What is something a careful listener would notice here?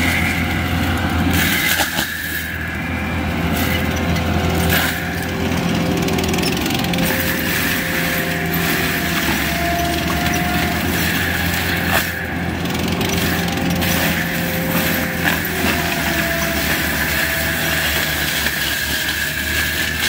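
A diesel engine roars steadily close by.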